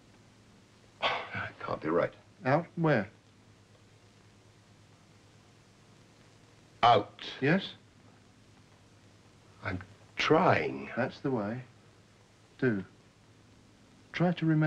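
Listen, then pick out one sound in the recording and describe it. A middle-aged man speaks slowly and heavily, with long pauses, close to a microphone.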